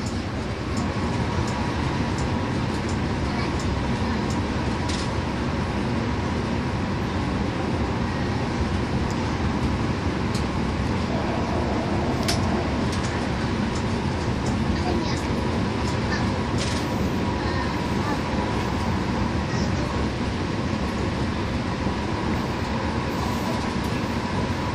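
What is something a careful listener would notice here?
Tyres roll with a steady rumble on the road.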